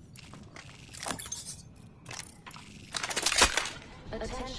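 A gun is handled with sharp metallic clicks.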